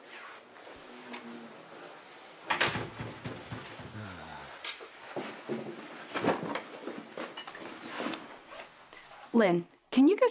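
Several young people chat quietly as they move about.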